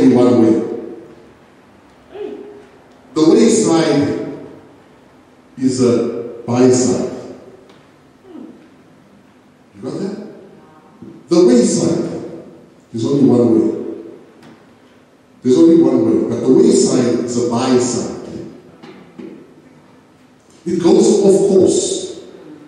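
A man preaches with animation into a microphone, his voice echoing through a loudspeaker.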